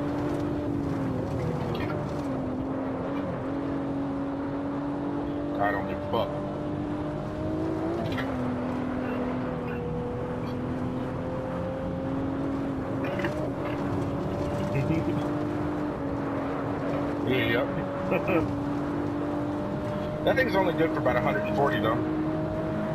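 A racing car engine drones steadily, its pitch rising and dipping with gear changes.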